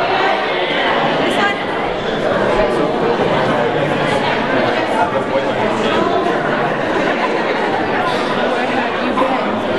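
Many children and adults chatter at once in a large echoing hall.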